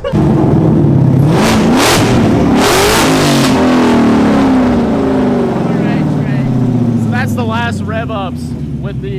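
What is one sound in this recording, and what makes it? A sports car engine revs loudly and roars up close.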